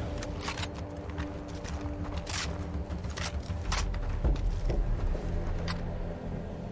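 A rifle bolt clicks and clacks as the rifle is reloaded.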